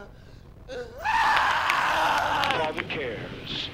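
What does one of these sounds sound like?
A young man screams in anguish close by.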